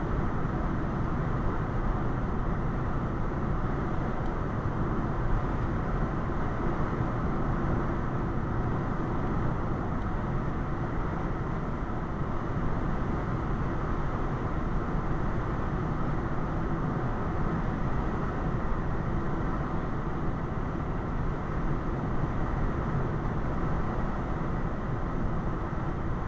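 A car's engine hums steadily from inside the cabin.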